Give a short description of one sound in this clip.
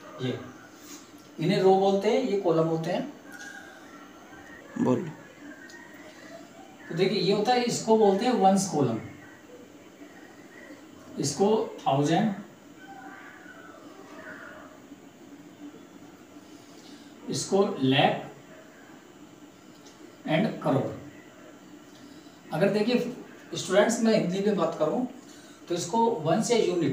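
A man speaks calmly nearby, explaining in short bursts with pauses.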